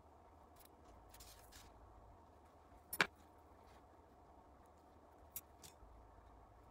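Small metal parts click and tap softly against each other.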